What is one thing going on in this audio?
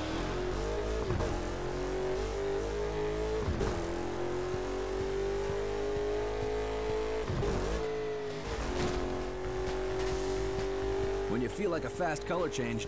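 A car engine roars steadily, dipping briefly with each gear change.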